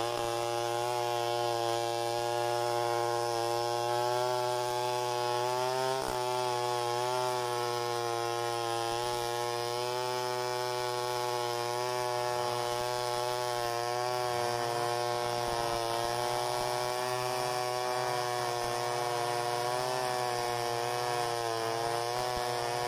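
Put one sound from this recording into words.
A chainsaw roars steadily close by, cutting through timber.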